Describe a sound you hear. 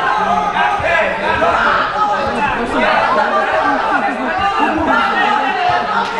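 A man calls out commands loudly.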